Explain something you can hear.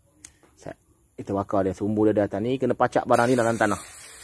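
A firework fuse fizzes and sputters close by.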